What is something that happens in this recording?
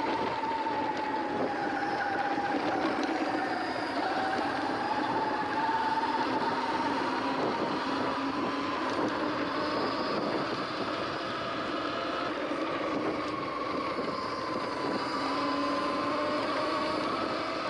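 An electric bike motor whines steadily, its pitch drifting slightly.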